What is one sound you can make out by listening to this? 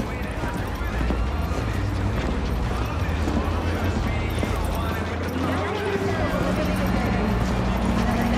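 Footsteps climb stone stairs.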